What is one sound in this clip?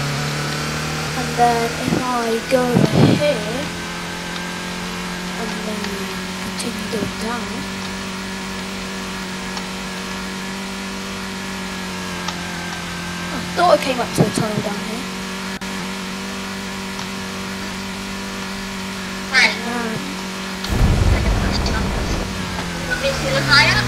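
A car engine hums steadily at high speed.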